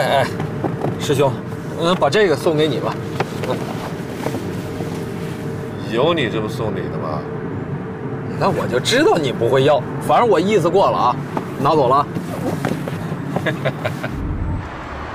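A middle-aged man speaks calmly up close inside a car.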